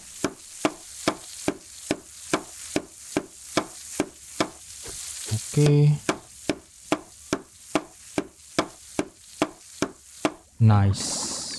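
A hammer knocks on a wooden barrel in quick, even blows.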